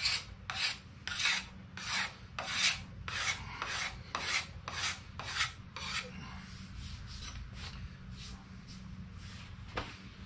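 A hand tool scrapes along a wooden ax handle in rhythmic strokes.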